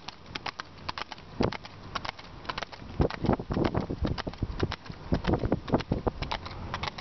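Horse hooves clop rhythmically on pavement.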